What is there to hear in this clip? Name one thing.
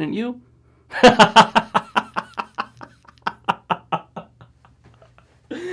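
A young man laughs loudly in bursts.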